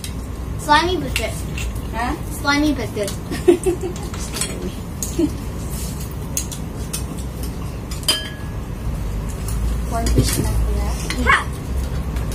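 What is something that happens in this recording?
Chopsticks and spoons clink against plates and bowls.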